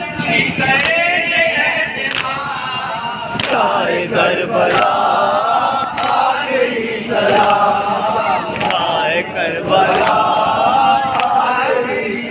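A crowd beats their chests in a steady rhythm.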